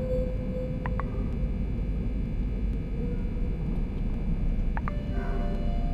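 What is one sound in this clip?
A menu gives short soft clicks as pages change.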